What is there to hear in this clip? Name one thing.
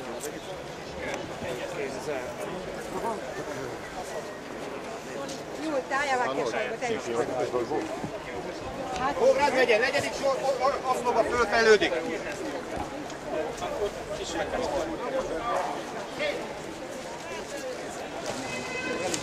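A crowd of men murmurs and talks outdoors.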